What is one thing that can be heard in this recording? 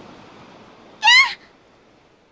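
A young girl screams sharply.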